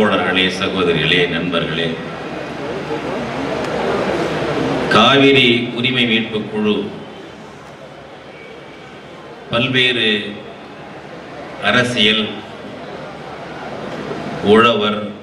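An elderly man speaks with animation through a loudspeaker, echoing outdoors, in short bursts with pauses.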